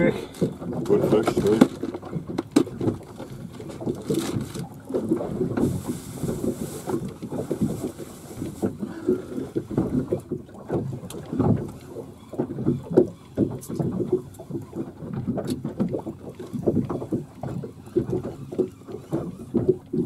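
A fishing reel winds in line.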